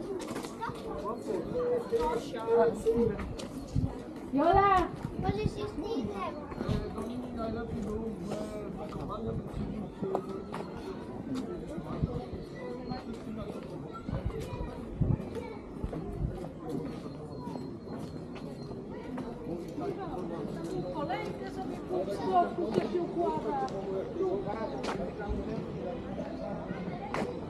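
Footsteps scuff on pavement nearby.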